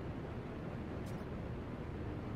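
An alert chime sounds once.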